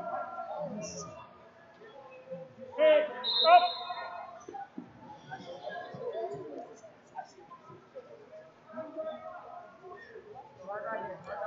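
Men shout encouragement from the sidelines in a large echoing hall.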